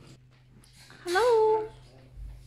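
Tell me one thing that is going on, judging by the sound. A baby coos briefly.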